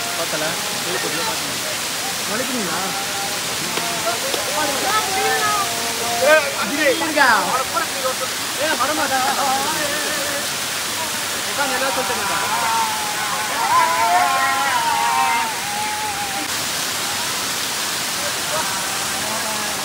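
A waterfall splashes and roars steadily onto rock.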